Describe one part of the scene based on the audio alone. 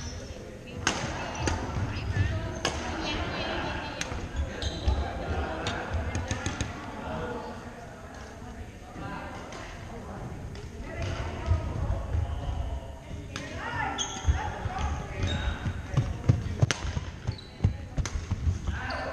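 Shuttlecocks are struck with sharp pops of badminton rackets.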